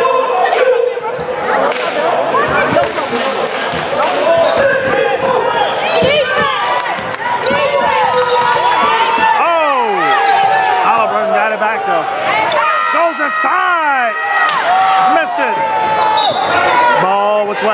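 A crowd of spectators murmurs and calls out in an echoing gym.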